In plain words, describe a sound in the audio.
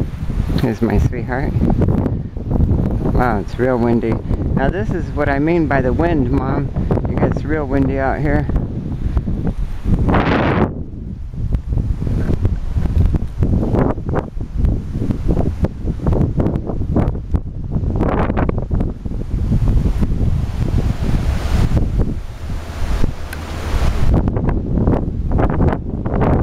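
Strong wind blows and buffets loudly outdoors.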